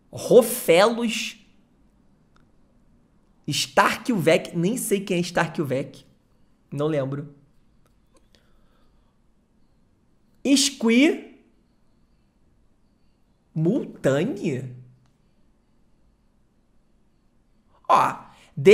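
A young man talks animatedly into a close microphone, in short bursts with pauses.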